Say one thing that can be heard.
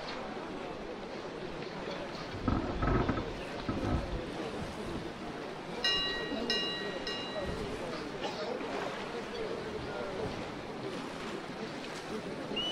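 Waves wash and splash against a ship's hull.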